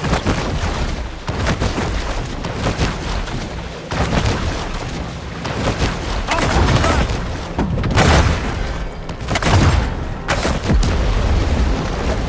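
Water splashes and churns as a large shark swims fast at the surface.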